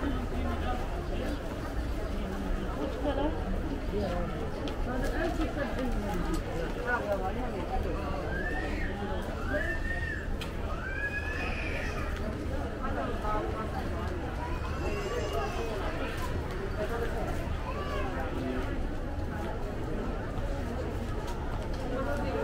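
A crowd of shoppers murmurs and chatters nearby indoors.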